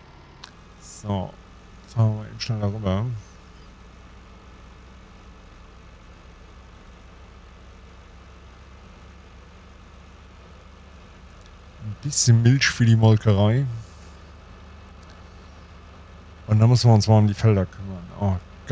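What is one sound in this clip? A man talks with animation, close to a headset microphone.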